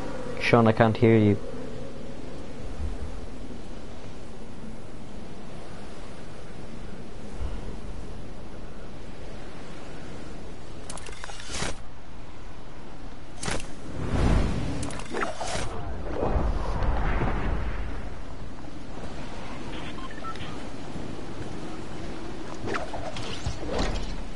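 Wind rushes past during a fall through the air.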